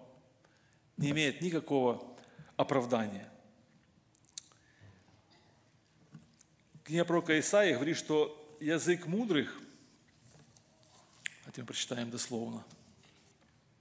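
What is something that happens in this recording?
An older man speaks calmly into a microphone in a large room, with pauses between phrases.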